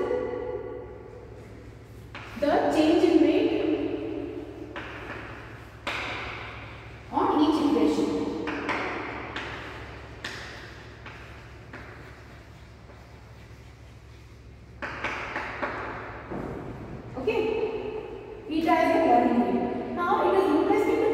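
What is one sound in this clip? A woman speaks calmly and clearly, like a teacher explaining.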